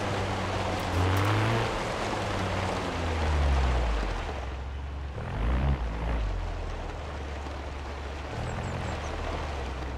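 Tyres crunch over gravel.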